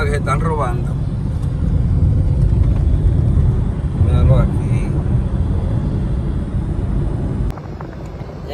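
A car's engine and tyres rumble steadily on a road.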